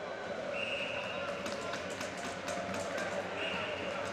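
Hockey sticks clack against the ice.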